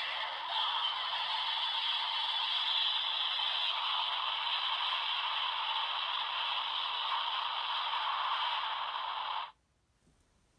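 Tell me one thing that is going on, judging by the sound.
A toy plays a loud, steady rushing sound effect through a small speaker, then cuts off abruptly.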